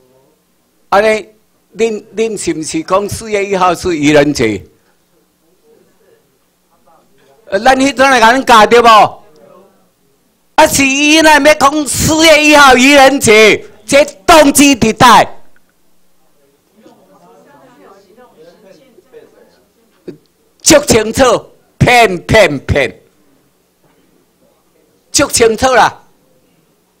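An elderly man speaks with animation through a microphone and loudspeakers, pausing often.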